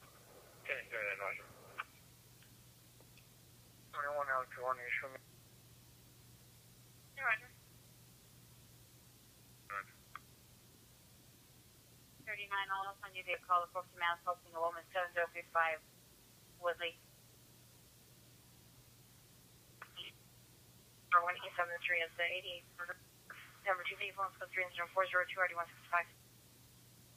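A radio scanner's small loudspeaker plays short bursts of radio transmissions.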